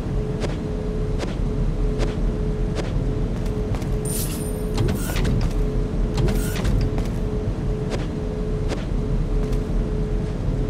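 Footsteps thud at an even walking pace.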